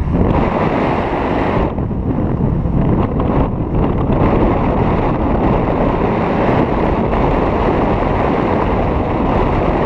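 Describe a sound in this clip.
Wind buffets a microphone during a paraglider flight.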